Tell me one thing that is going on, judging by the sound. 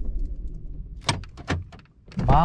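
A car door handle clicks as it is pulled.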